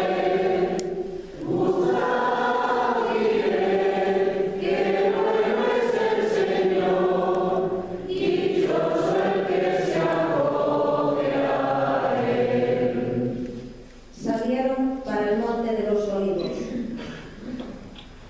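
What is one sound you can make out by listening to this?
A choir sings a slow, drawn-out chant in a large echoing hall.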